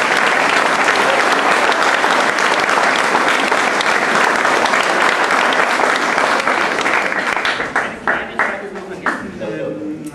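An audience applauds loudly in a large hall and then dies away.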